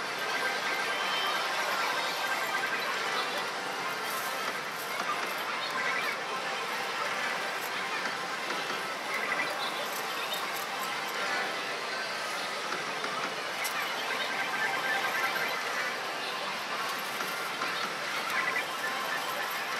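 A slot machine plays bright electronic jingles and chimes.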